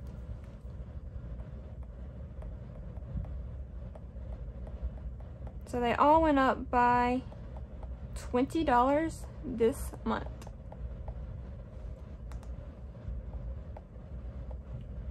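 A stylus taps and scratches lightly on a tablet.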